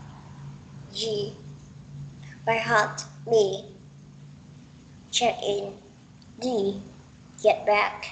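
A young woman speaks in short phrases over an online call.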